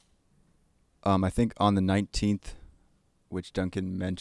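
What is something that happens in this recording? A man speaks into a microphone, close and clear.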